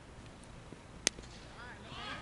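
A cricket bat hits a ball with a sharp crack.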